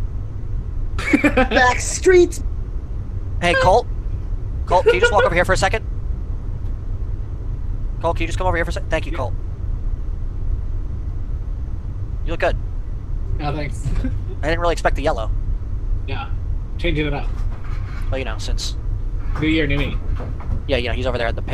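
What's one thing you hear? A young man talks with animation, in short bursts.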